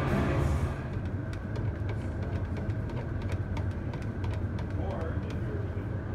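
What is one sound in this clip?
A stick scrapes and taps inside a paint can.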